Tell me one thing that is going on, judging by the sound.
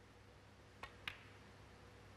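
A cue ball knocks against snooker balls with a sharp click.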